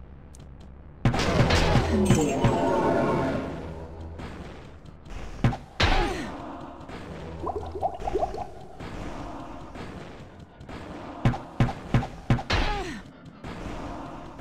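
Game sound effects clash and thud during combat.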